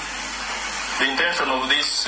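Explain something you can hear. A man speaks firmly into a microphone.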